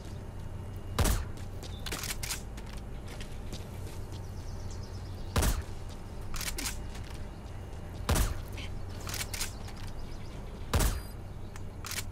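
A rifle fires single loud shots, each one echoing.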